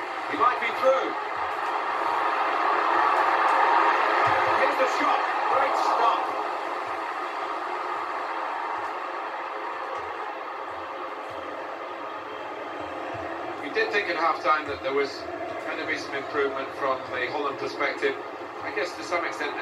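A large stadium crowd roars and cheers, swelling and then settling to a steady murmur.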